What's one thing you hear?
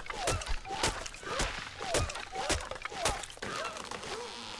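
Fist blows knock repeatedly against a tree trunk.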